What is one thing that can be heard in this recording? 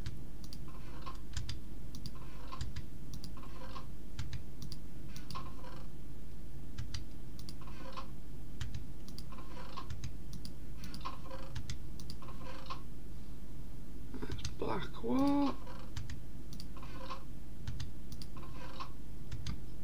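A wooden chest creaks open and shuts with a soft thud, again and again.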